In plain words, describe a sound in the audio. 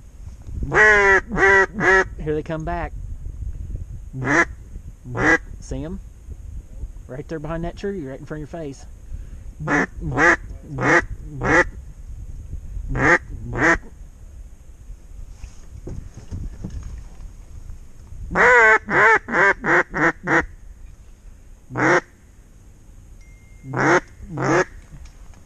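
A duck call quacks loudly in short repeated bursts close by.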